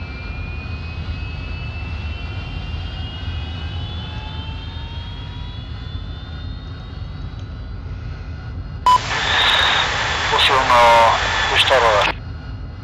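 A jet engine idles with a low rumble and a slowly rising whine.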